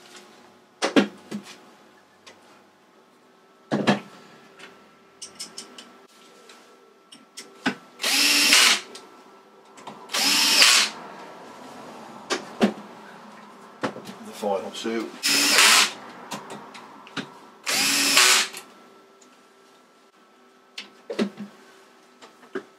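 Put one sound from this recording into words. A metal box knocks and scrapes as hands turn it on a hard surface.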